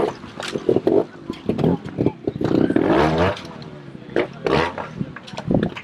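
A motorbike engine revs in sharp bursts close by.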